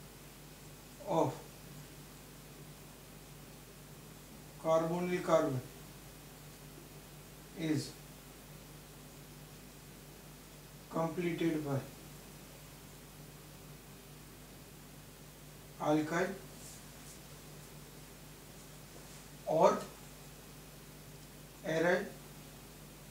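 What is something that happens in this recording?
A middle-aged man speaks calmly in short phrases, close by.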